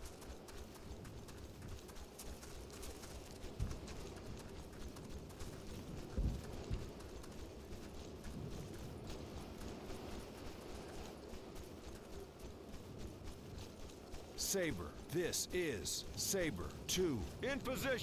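Footsteps crunch through grass and gravel.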